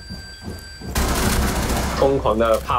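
Rapid gunfire bursts out at close range.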